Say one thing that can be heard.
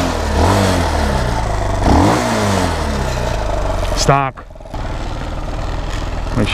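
A motorcycle engine idles with a rough, steady rumble close by.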